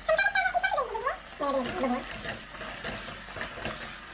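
A spatula scrapes and stirs in a pan.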